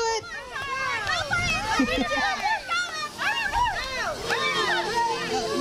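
A small crowd of adults cheers and calls out nearby.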